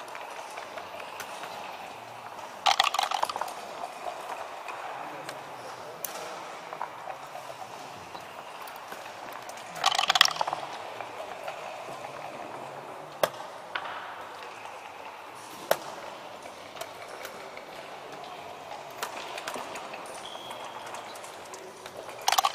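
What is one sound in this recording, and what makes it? Game pieces click and slide on a wooden board.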